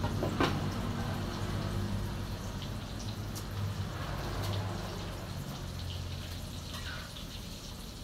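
A metal utensil clinks against a pan.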